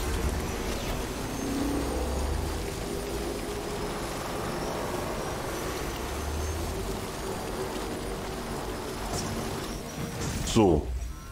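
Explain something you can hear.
A vehicle engine rumbles steadily while driving over rough ground.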